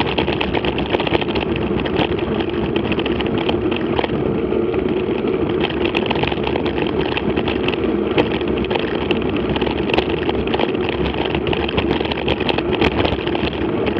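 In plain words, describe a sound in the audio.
Tyres crunch and rattle steadily over loose gravel.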